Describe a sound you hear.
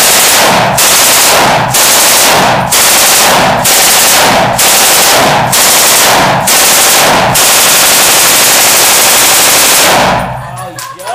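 A machine gun fires long, deafening bursts that echo off brick walls.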